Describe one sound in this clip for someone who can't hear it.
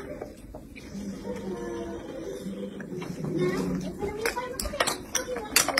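A man speaks softly to a baby close by.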